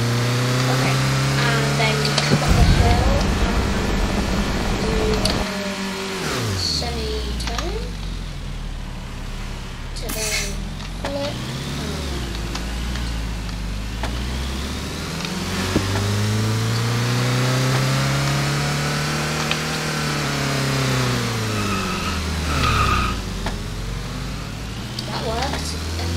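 A game car engine roars, revving up and down as it speeds and slows.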